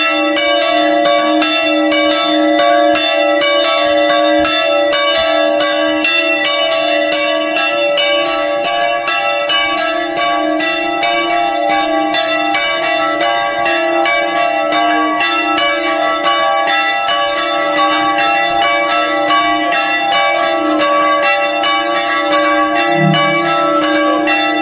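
Church bells ring rapidly and continuously nearby.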